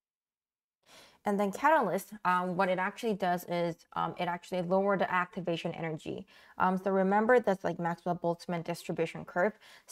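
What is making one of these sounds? A young woman speaks calmly and clearly into a close microphone, explaining.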